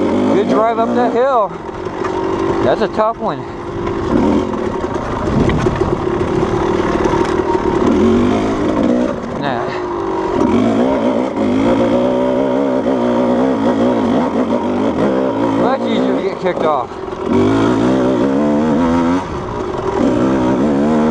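A dirt bike engine revs up and down loudly close by.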